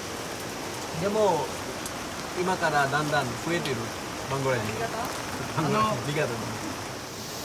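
A man speaks close by in short, lively phrases.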